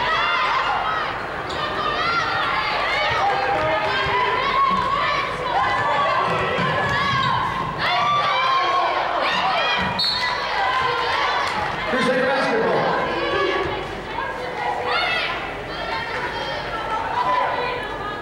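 Basketball shoes squeak on a hardwood court in a large echoing gym.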